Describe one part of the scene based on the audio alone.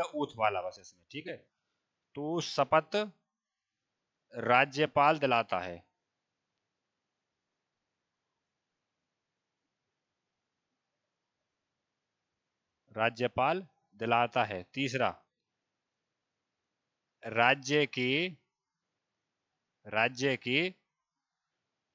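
A man speaks calmly through a headset microphone, in short bursts with pauses.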